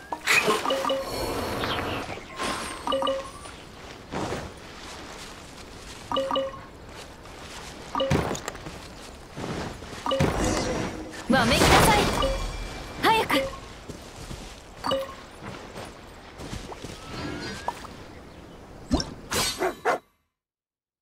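A bright magical chime rings out again and again.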